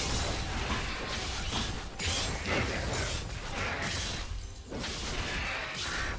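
Magic blasts and sword hits clash in a fast video game battle.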